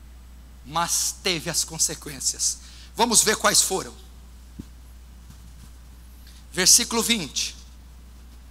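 A young man speaks calmly through a microphone, with long pauses.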